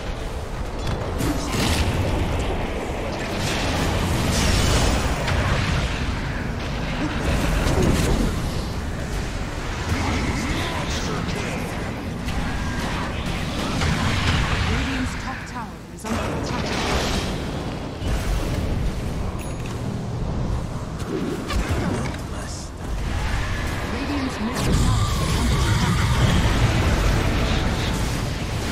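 Magic blasts and clashing fight effects crackle and boom without pause.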